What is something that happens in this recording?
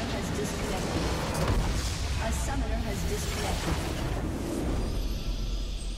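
A large structure explodes with a deep boom.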